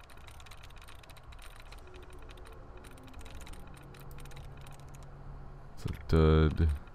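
Rapid soft electronic clicks tick from a computer terminal.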